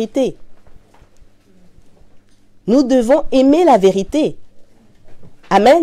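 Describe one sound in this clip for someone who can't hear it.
A woman speaks clearly and calmly into a nearby microphone, with pauses.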